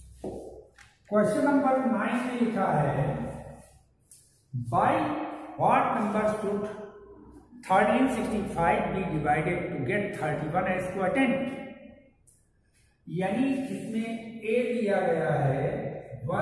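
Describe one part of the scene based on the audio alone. An elderly man speaks clearly into a close microphone.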